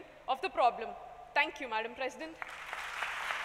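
A young woman speaks through a microphone in a large hall.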